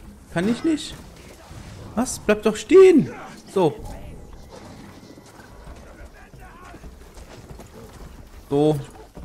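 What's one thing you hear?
A large beast growls.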